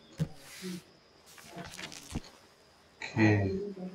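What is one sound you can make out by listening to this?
Paper pages rustle as a book is opened.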